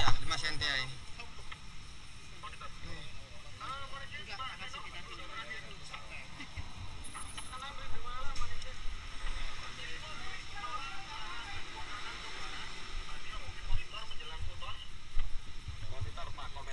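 Several men talk nearby in calm, low voices.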